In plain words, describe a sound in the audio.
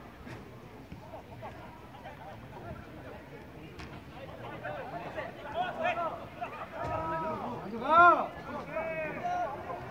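Young men shout to each other across an open field, far off and echoing.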